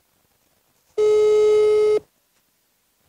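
A phone gives a steady, one-second beep.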